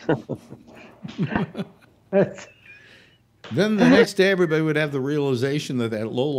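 An elderly man laughs over an online call.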